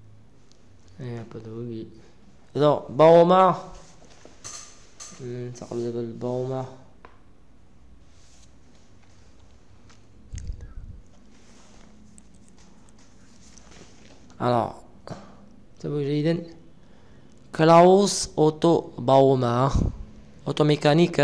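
A man speaks calmly and slowly into a microphone, with pauses.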